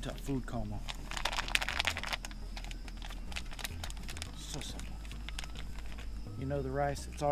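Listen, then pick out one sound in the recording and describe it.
A foil packet crinkles in a man's hands.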